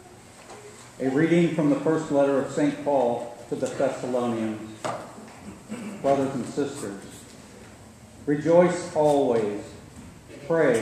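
A man reads aloud through a microphone in a large echoing hall.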